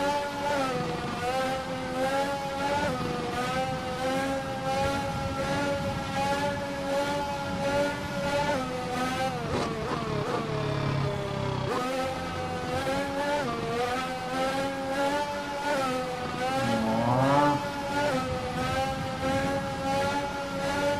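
A racing car engine screams at high revs, its pitch rising and dropping with each gear change.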